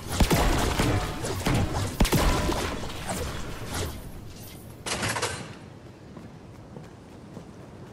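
Footsteps run quickly across a hard floor.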